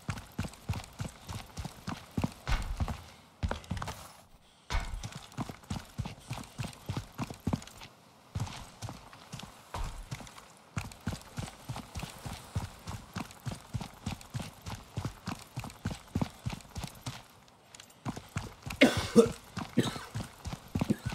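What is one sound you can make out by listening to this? Footsteps tread quickly and steadily on hard ground.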